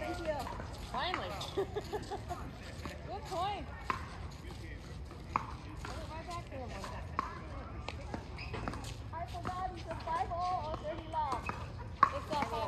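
Paddles hit a ball back and forth with sharp pops outdoors.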